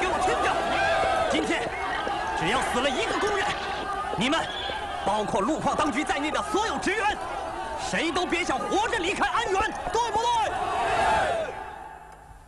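A man shouts with agitation close by.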